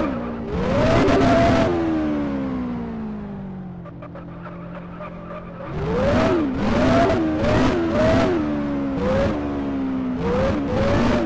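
A sports car engine revs in short bursts, then drops back to a low hum.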